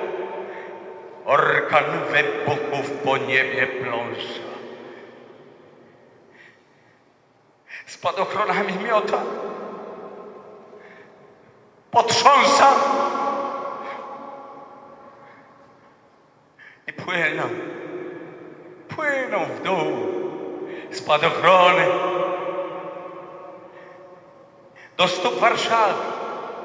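A man sings loudly through a microphone in a large echoing hall.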